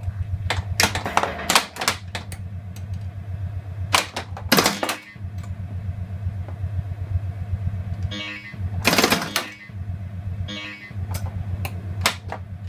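A pinball machine plays electronic music and sound effects.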